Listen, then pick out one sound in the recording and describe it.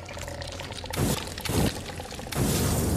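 A flamethrower roars in short, loud bursts.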